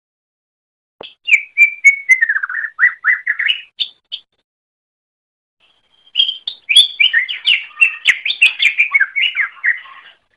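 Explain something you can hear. A small songbird sings rapid, varied chirping phrases.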